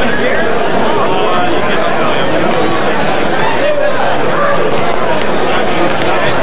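A crowd of men chatter and talk over one another close by.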